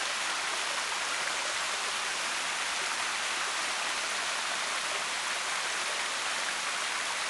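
Water splashes and rushes steadily down a small waterfall close by.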